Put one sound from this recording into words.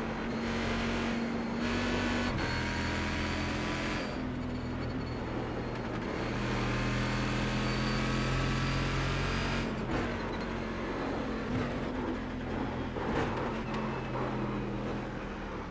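A racing car engine roars loudly, rising and dropping in pitch as it shifts gears.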